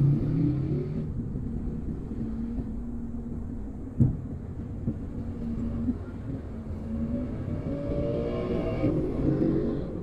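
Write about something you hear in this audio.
Motorcycle engines putter close by in slow traffic.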